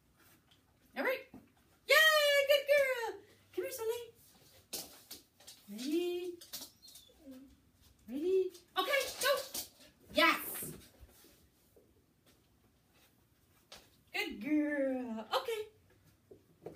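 A woman speaks to a dog with animation, close by.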